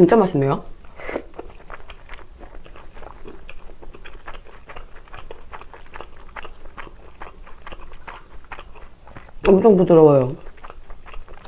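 A young woman speaks briefly and softly close to a microphone.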